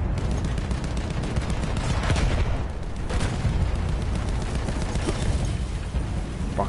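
Rifle shots crack rapidly.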